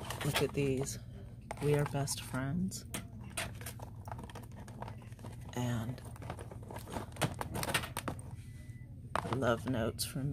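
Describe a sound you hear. Cardboard cards rustle and tap as a hand moves them.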